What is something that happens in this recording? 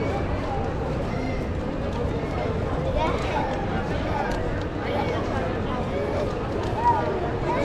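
A busy crowd murmurs with many voices of men and women talking nearby.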